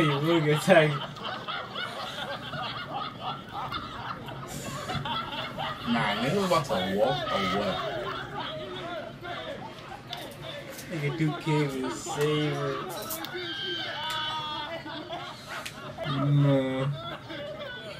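Young men laugh and talk with animation close by.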